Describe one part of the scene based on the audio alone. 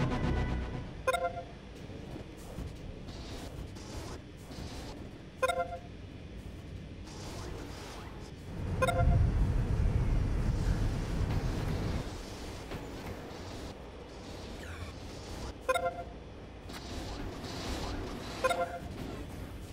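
A short electronic chime sounds several times.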